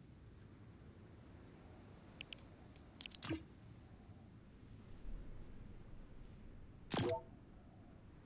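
A game menu gives short clicks as it opens and closes.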